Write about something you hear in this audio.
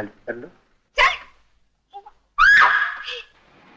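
A child cries out.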